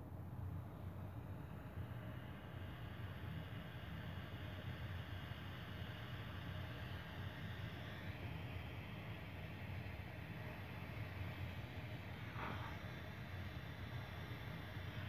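A propane torch flame hisses.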